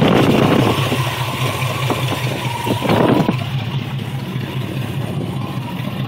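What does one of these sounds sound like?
A car engine idles with a steady, uneven rumble close by.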